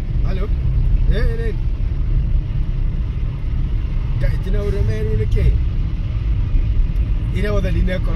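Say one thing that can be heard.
A car engine rumbles low and steady inside the car.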